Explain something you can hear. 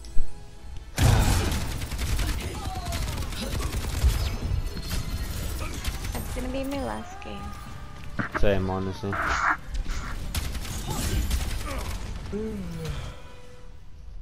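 Rapid gunfire and blasts ring out in a video game.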